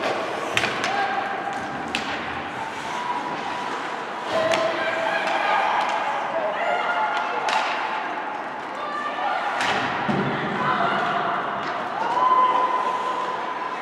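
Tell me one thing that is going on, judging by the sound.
Ice skates scrape and hiss across ice in an echoing rink.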